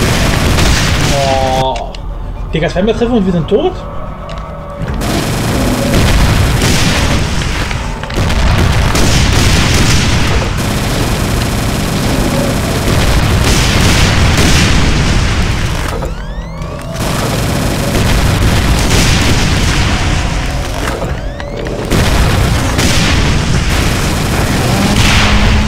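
Explosions blast and rumble.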